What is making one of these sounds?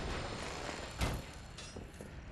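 A blade swishes and strikes with a sharp impact.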